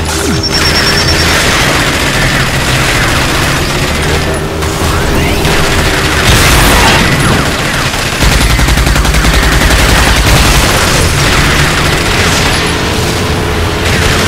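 A buggy engine roars steadily as it races over dirt.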